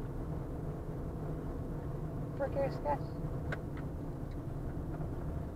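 A car drives steadily along a road with a low rumble of tyres and engine.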